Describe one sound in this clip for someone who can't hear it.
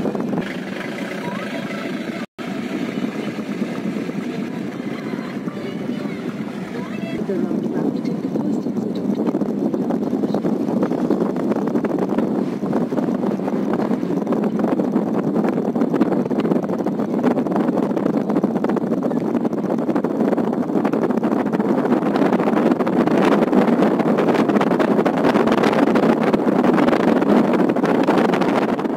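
A car's engine hums steadily while driving.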